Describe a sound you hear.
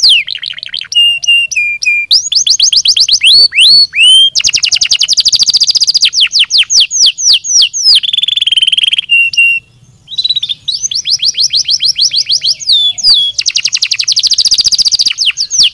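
A canary sings a loud, fast trilling song close by, with rapid chirps and whistled runs.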